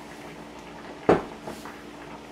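A metal spoon clatters onto a countertop.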